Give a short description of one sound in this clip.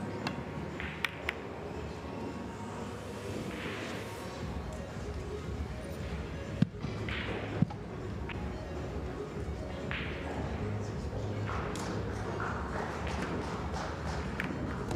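A cue tip strikes a pool ball.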